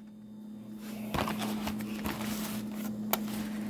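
A cardboard box is handled and scrapes against a hard surface.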